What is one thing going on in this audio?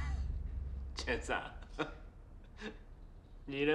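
A man laughs softly close by.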